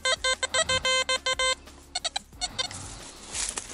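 A metal detector beeps in quick, repeated bursts.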